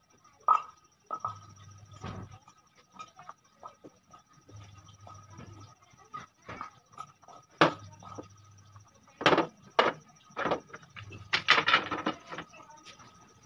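Wooden dowels knock and clatter against wood.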